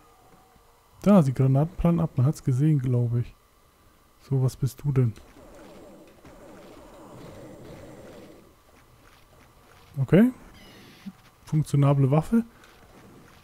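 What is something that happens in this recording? A monster roars with a deep, wavering growl.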